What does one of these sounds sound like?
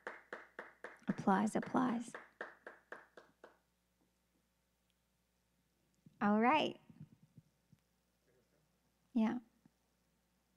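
A woman speaks brightly into a close microphone, in short bursts.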